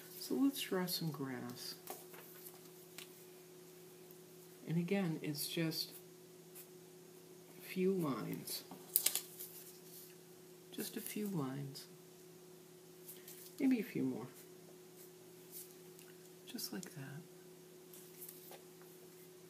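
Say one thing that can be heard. Paper cut-outs rustle as they are handled.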